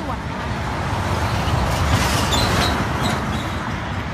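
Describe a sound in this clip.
A heavy truck roars past close by.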